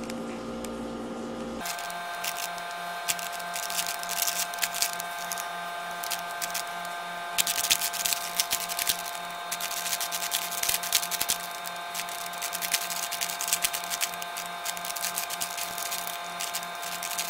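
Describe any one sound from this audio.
A puzzle cube clicks and rattles quickly as its sides are turned.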